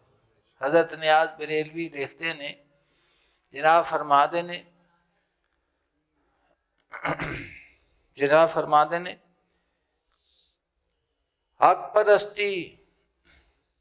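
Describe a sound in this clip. An elderly man speaks slowly and earnestly into a close microphone, with pauses.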